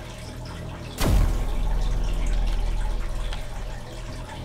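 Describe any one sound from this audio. A deep boom strikes and rumbles on, slowly fading.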